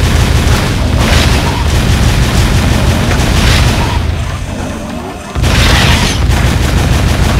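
Explosions burst loudly.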